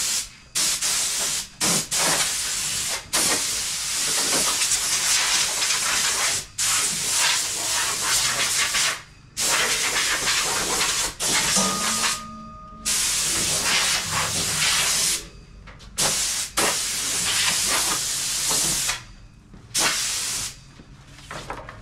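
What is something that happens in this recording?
Compressed air hisses loudly in bursts from an air hose.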